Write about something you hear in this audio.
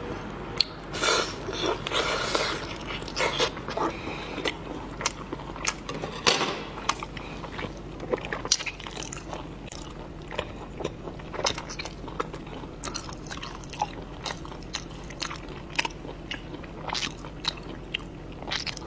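A woman slurps and sucks meat from a shell up close.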